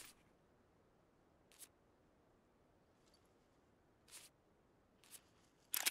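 Footsteps crunch softly on snow.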